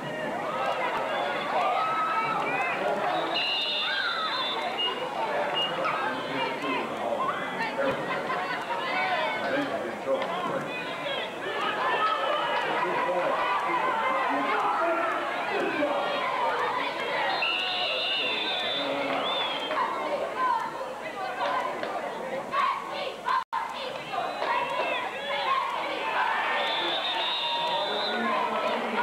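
A crowd of spectators chatters and cheers close by.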